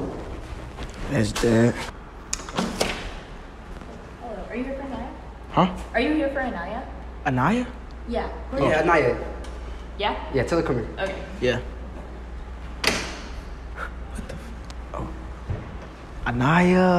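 Young men talk and laugh nearby in an echoing hallway.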